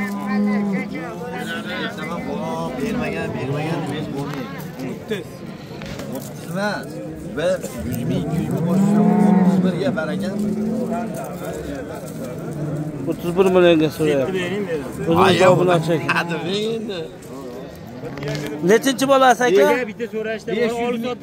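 Several men talk loudly and with animation close by, outdoors.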